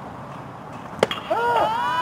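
A softball pops into a catcher's mitt.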